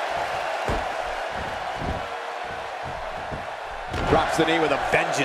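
A crowd cheers loudly in a large arena.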